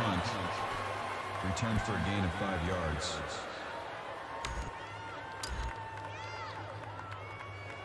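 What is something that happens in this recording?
A crowd roars in a large stadium.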